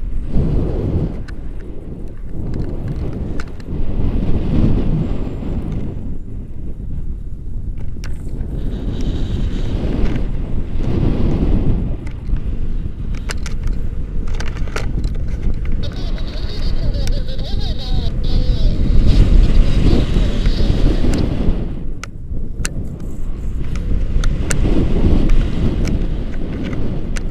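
Wind rushes loudly and steadily past a microphone.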